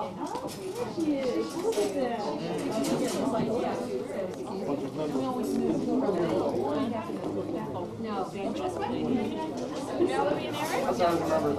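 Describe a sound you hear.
A man and a woman talk calmly nearby.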